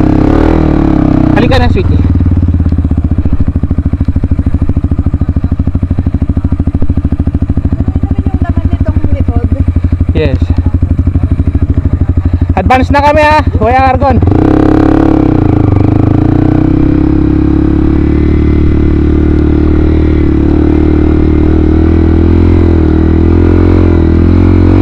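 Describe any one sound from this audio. A motorbike engine runs steadily up close.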